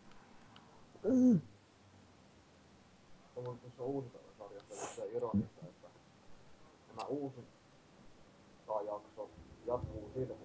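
A man talks casually into a nearby microphone, in short bursts.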